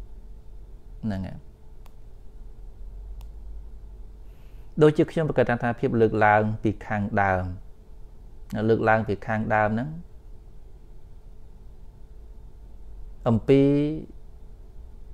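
A man speaks calmly in short phrases, close to a microphone, with pauses between.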